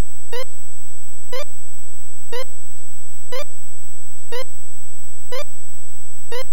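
An electronic game beeps once every second with a short buzzy tone as a timer counts down.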